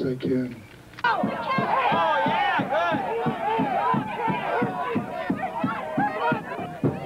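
A crowd of men and women shouts and chants together.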